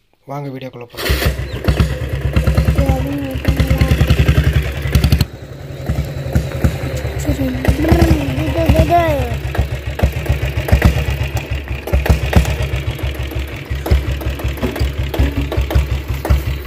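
A motorcycle engine thumps and putters loudly up close.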